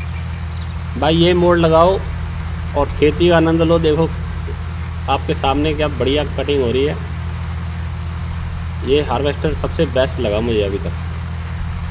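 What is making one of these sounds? A middle-aged man talks with animation into a microphone, close up.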